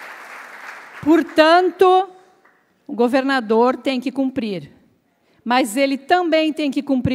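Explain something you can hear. A middle-aged woman speaks with animation into a microphone.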